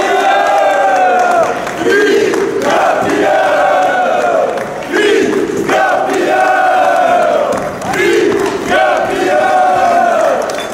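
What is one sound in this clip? A crowd of men chants and sings loudly together in an echoing hall.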